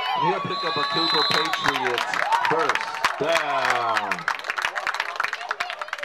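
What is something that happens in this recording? Cheerleaders clap their hands rapidly.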